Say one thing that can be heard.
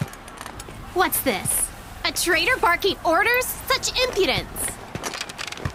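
A young woman speaks sharply.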